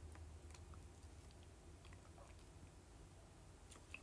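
A young woman sips a drink through a straw close by.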